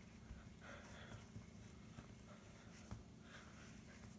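Hands knead soft dough with quiet pats.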